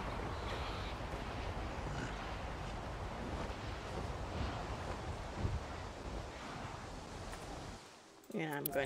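Wind rushes past steadily.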